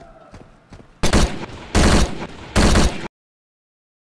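Rifle shots fire in loud bursts.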